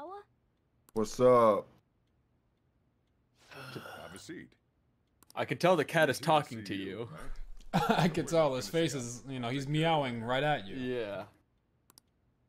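An older man speaks calmly and warmly.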